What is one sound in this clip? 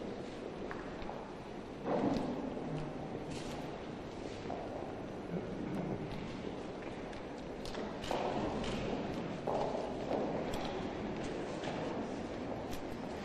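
A crowd murmurs quietly in a room with a slight echo.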